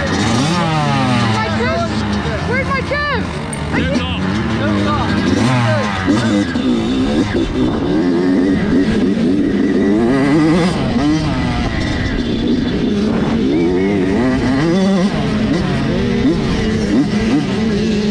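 A dirt bike engine revs loudly and roars as it rides.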